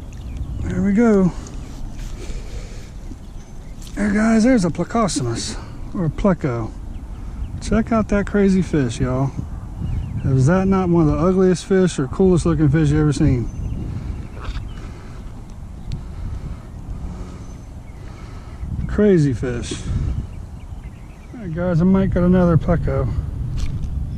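A man talks casually close to the microphone, in short bursts.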